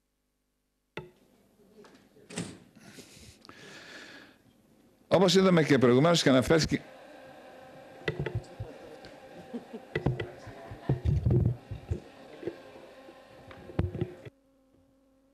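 A middle-aged man speaks steadily through a microphone.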